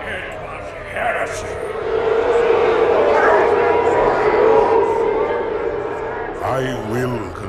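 A large crowd roars and cheers in a vast echoing hall.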